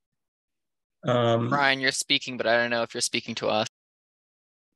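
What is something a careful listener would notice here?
A young man speaks over an online call.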